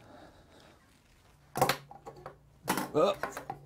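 A small circuit board is set down on a wooden surface with a light knock.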